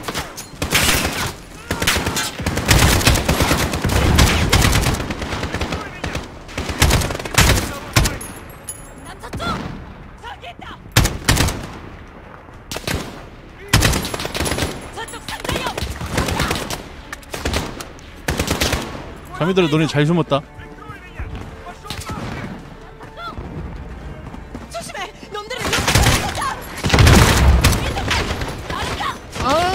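Rifle gunfire cracks in bursts.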